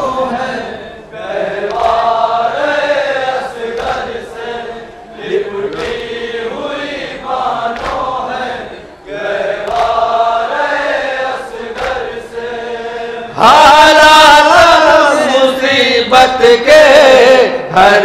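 A crowd of men chants a lament loudly outdoors.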